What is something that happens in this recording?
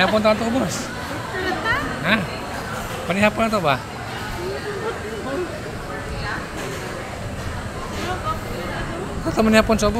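A woman talks and laughs close by.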